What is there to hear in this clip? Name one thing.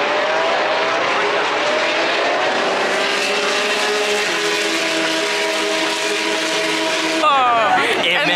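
Racing car engines roar and whine as a pack of cars speeds past outdoors.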